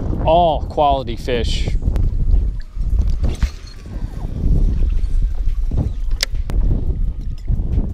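Water laps and splashes against a boat's hull.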